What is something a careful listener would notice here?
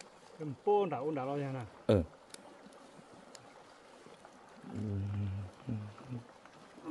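A slow river flows gently by.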